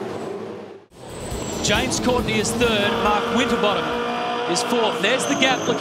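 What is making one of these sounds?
An engine whines and revs up and down as gears shift, heard close up from on board.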